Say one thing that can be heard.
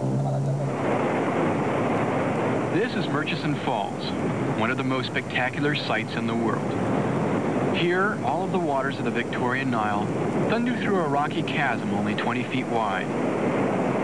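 A waterfall roars and thunders loudly.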